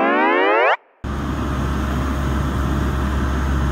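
An auger engine rumbles steadily as the auger drills into the ground.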